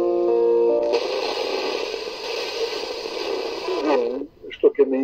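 A radio loudspeaker hisses with static as a station is tuned.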